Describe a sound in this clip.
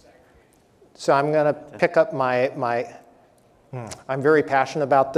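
A man speaks through a microphone on stage, with a slight echo.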